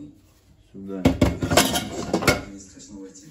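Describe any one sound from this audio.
A pan clatters and scrapes in a metal sink.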